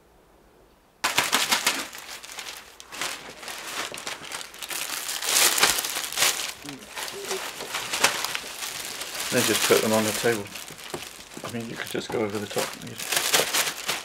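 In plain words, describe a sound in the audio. A thin plastic bag crinkles as salad leaves are stuffed into it.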